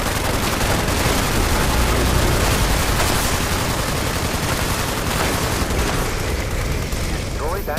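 Energy beams crackle and hum.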